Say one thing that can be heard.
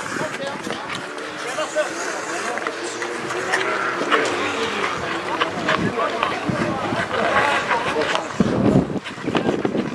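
Players shout to each other across an open outdoor rink.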